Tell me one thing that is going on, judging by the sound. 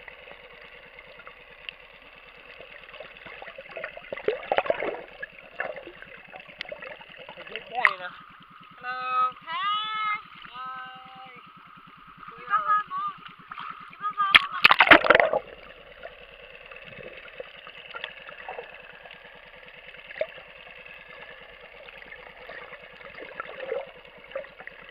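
Water hisses and bubbles softly, heard muffled underwater.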